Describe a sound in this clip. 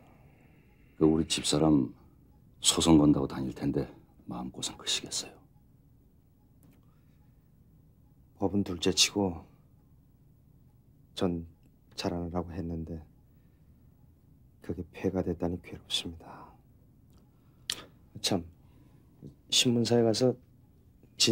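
An older man answers calmly nearby.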